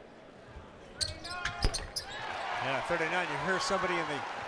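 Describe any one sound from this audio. Sneakers squeak sharply on a hardwood court.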